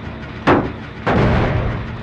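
A machine rattles and clanks as it is worked on.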